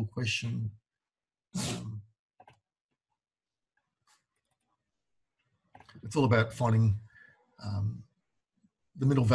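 A man talks calmly into a close microphone, with pauses.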